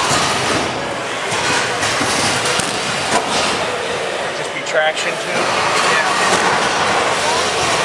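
Small robot motors whir and grind across a hard floor.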